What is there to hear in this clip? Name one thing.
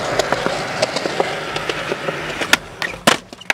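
Skateboard wheels roll over concrete with a rough rumble.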